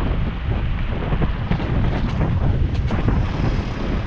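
A bus engine roars close by as the bus passes.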